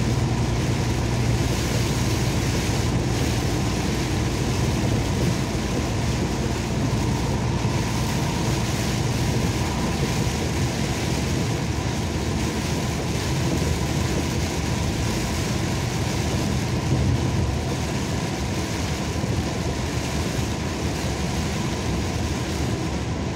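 Rain drums steadily on a car windshield.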